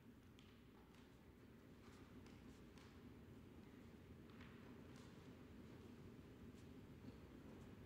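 A trumpet plays in a large hall.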